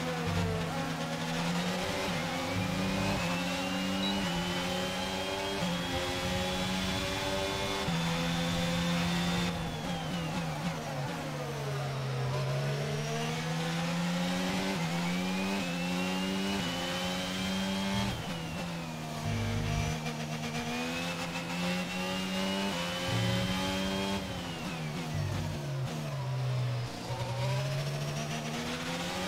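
A racing car engine screams, rising in pitch through each gear and dropping as the car brakes.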